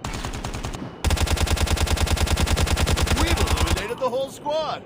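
A rifle fires in a rapid, steady burst.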